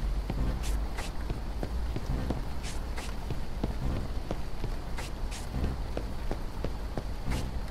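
Footsteps tread steadily at a brisk walking pace.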